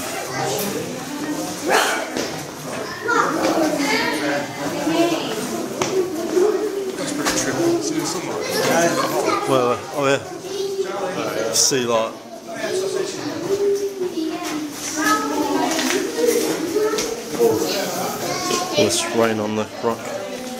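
Several men and women talk over one another close by.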